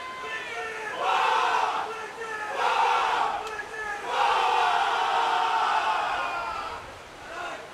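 A crowd cheers loudly in the distance.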